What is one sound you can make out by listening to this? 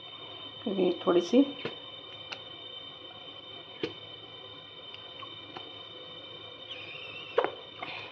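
A plastic bottle of sauce is squeezed, with a soft squelch.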